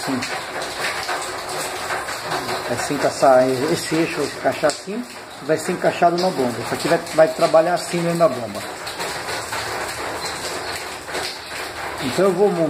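Small metal parts click softly as they are handled.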